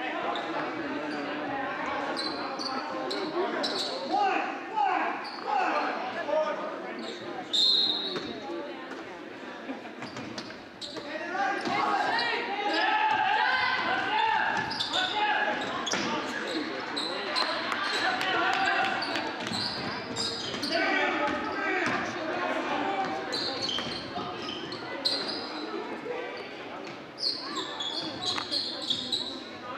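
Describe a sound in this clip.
A crowd of spectators murmurs and cheers in an echoing gym.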